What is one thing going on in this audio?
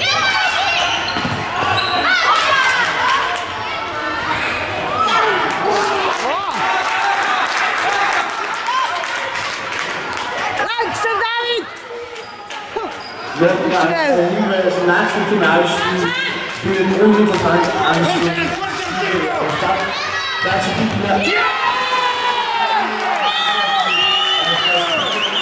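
A crowd of spectators cheers and chants.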